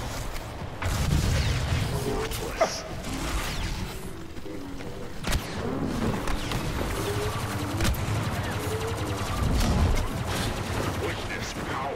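Explosions boom with a deep rumble.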